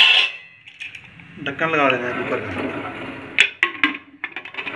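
A metal lid clanks onto a pressure cooker.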